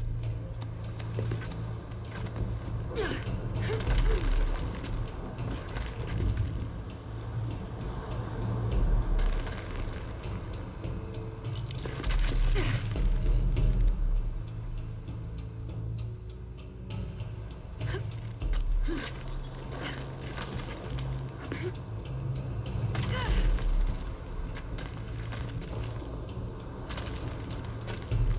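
Hands and boots scrape and grip on rock while climbing.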